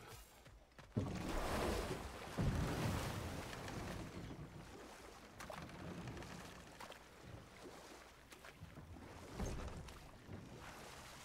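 A wooden paddle splashes and swishes through water.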